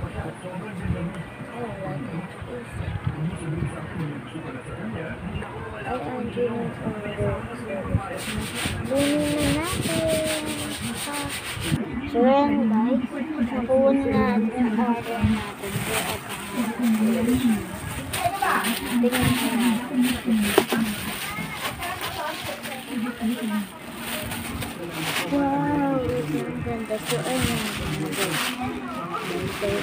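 A young girl talks with animation close to a phone microphone.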